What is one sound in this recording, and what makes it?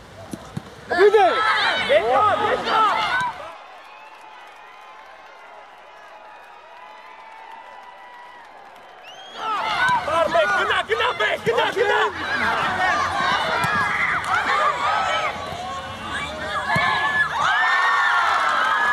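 Young players shout across an outdoor pitch.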